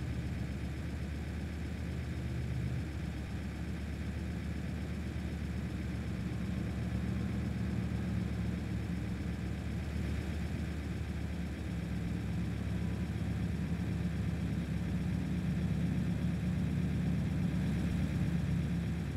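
A truck engine hums steadily at speed, slowly growing louder.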